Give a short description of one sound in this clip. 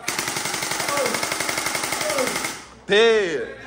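A toy foam blaster fires rapidly with a buzzing whir.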